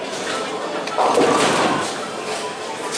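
Bowling pins crash and scatter.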